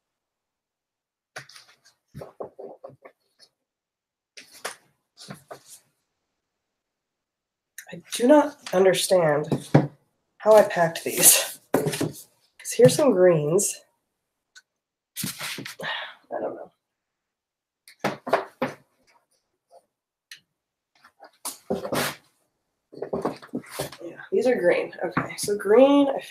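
Books thump and rustle as they are stacked and moved.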